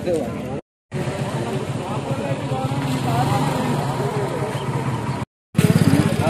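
A crowd of men murmurs outdoors.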